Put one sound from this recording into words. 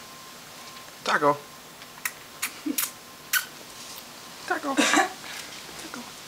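A kitten meows loudly a couple of times.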